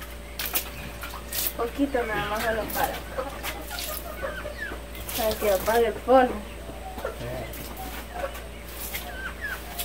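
Water splashes onto the ground from a bowl.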